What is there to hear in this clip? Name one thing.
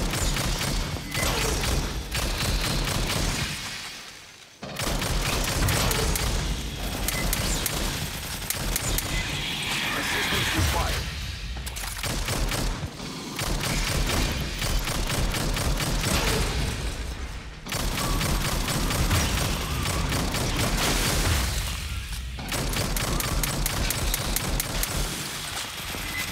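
A video game automatic rifle fires in rapid bursts.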